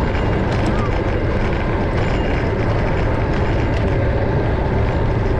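A car drives along a paved road, its tyres humming steadily.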